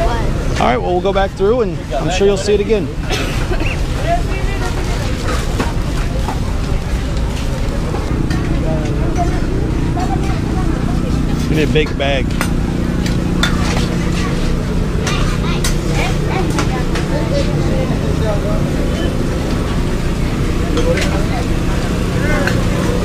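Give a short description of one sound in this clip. A crowd chatters steadily outdoors.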